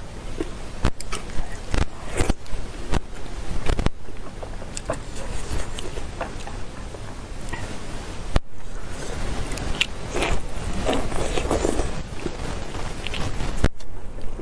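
A young woman sucks and slurps food close to a microphone.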